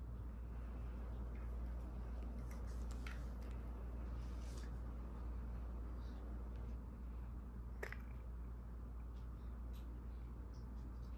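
A baby sucks softly on a bottle, with small wet clicks.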